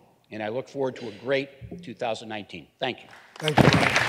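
A middle-aged man speaks forcefully into a microphone in a large hall.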